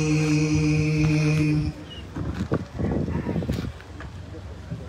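A man chants through a microphone over loudspeakers outdoors.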